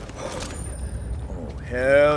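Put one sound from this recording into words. A short electronic swoosh sounds as a menu opens.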